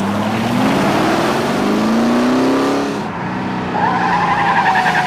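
A car engine roars and revs up.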